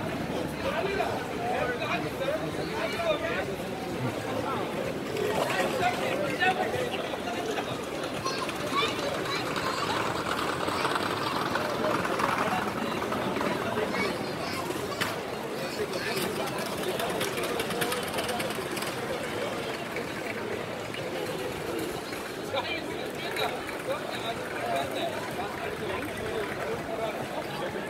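A crowd chatters outdoors all around.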